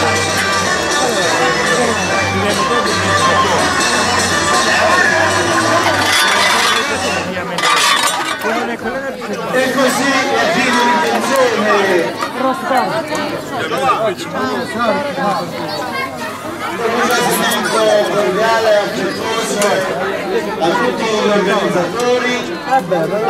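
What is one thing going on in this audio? Men and women chat nearby outdoors.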